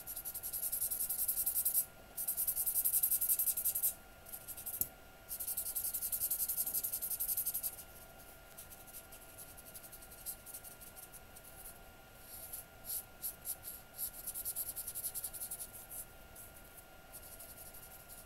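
A felt-tip marker scratches and squeaks across paper in quick strokes.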